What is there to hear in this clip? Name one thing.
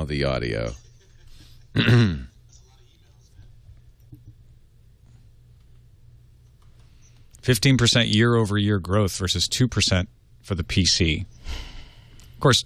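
A man speaks close to a microphone in short bursts.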